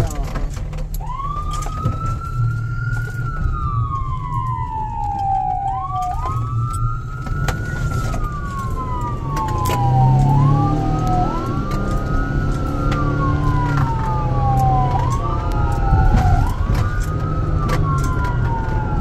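A siren wails loudly, rising and falling in slow sweeps.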